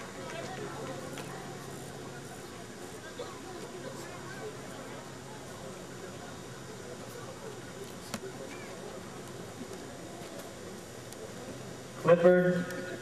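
A crowd murmurs softly outdoors.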